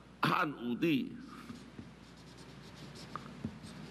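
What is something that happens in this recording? A marker squeaks across paper.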